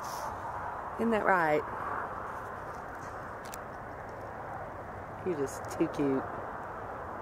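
A small kitten meows softly, close by.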